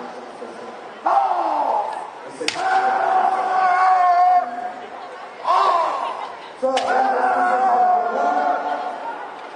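Young men shout loud, drawn-out battle cries in a large echoing hall.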